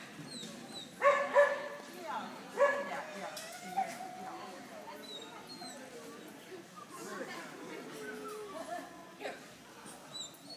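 A young woman calls out and praises a dog with animation in a large echoing hall.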